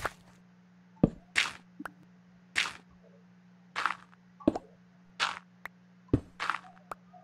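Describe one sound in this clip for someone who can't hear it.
Stone blocks break with sharp crunching knocks.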